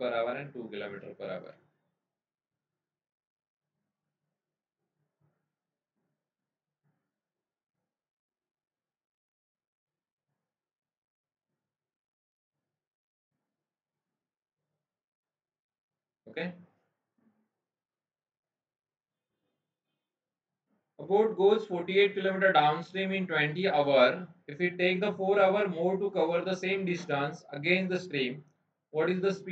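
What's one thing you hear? A man speaks calmly and explains through a microphone.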